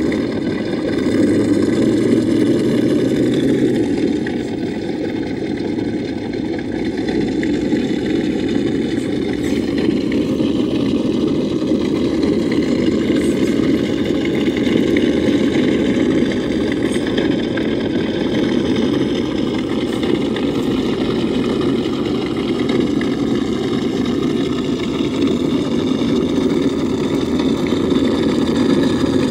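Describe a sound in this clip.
Small plastic tyres grind and crunch over stone and dry leaves.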